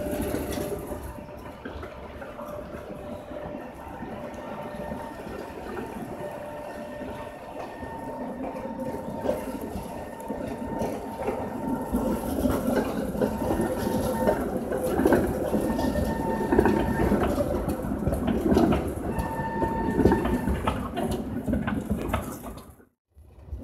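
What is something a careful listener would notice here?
A tram rumbles closer over the rails and passes nearby.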